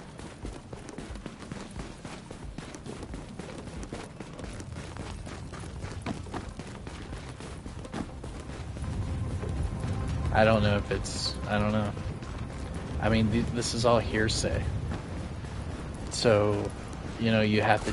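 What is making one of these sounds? Boots crunch through snow at a steady walking pace.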